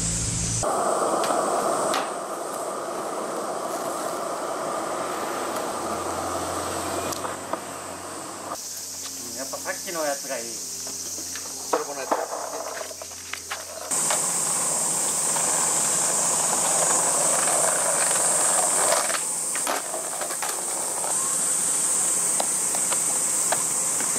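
A skateboard clacks as it lands on concrete.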